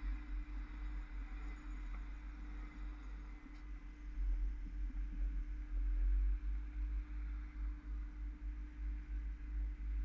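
Wind buffets the microphone in gusts outdoors.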